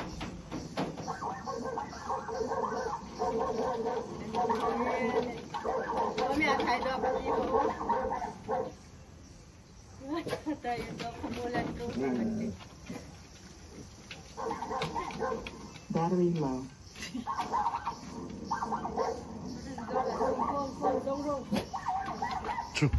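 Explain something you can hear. Dogs whine and whimper close by.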